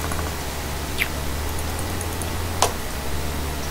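Building pieces snap into place with sharp clacks.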